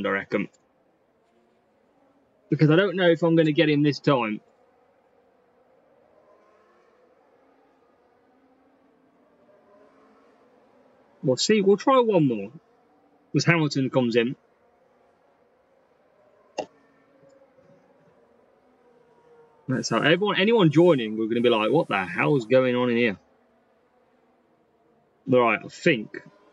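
A young man talks casually and close to a microphone, in short bursts with pauses.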